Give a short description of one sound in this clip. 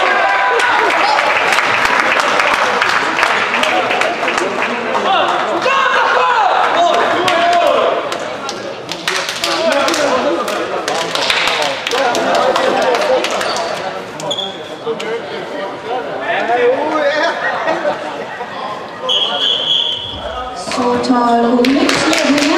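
Players shout and cheer with excitement in an echoing sports hall.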